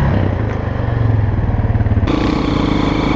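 A quad bike engine runs loudly close by.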